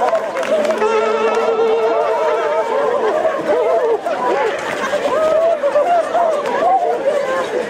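A large crowd of spectators talks and calls out outdoors.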